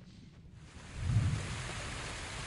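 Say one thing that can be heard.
A body splashes heavily into water.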